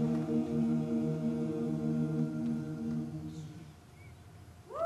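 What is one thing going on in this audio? A men's choir sings a sustained chord in a large hall, then fades out.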